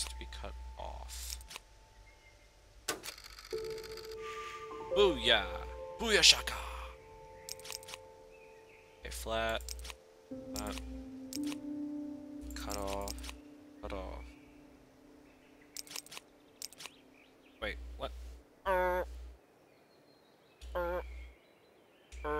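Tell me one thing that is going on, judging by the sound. Short electronic clicks and chiming tones sound on and off.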